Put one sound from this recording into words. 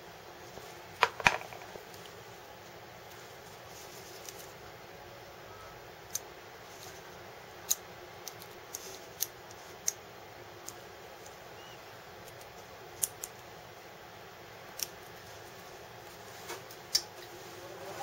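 Small plastic pieces click and tap as they are handled.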